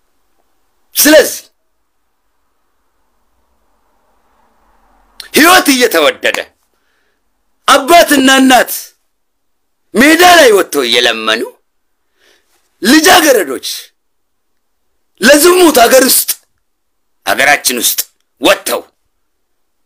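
A man speaks animatedly close to a microphone, in short bursts with pauses.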